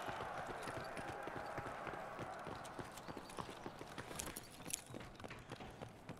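Quick footsteps thud on hard ground in a game.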